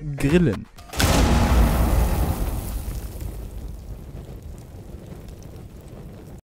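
Flames crackle and roar, slowly dying down.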